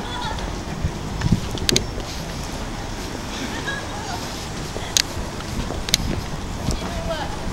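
A busy street murmurs with distant voices and bustle.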